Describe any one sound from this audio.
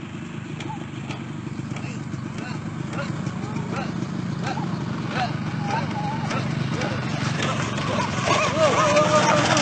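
A motorcycle engine rumbles steadily, growing louder as it comes closer.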